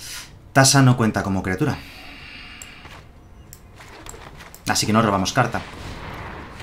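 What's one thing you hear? A man speaks with animation, close to a microphone.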